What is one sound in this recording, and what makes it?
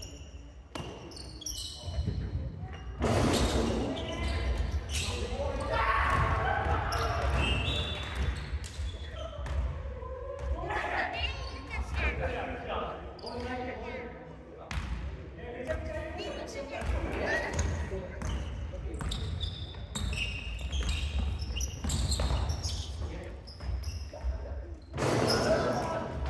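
Sneakers squeak on a wooden floor in a large echoing hall.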